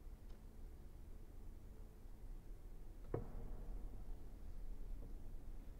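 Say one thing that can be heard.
A cello plays slow, low notes in an echoing hall.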